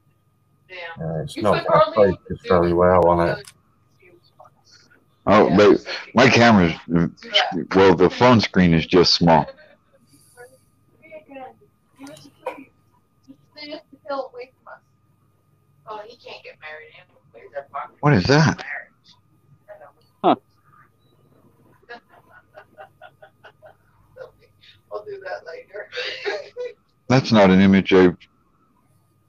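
A middle-aged man talks with animation over an online call.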